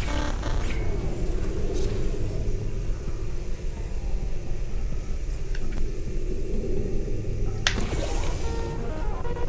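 A laser beam hums steadily.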